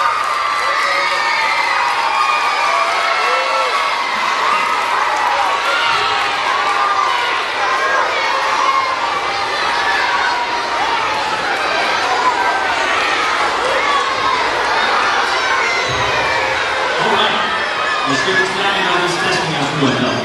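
A large crowd of children chatters and shouts loudly in an echoing hall.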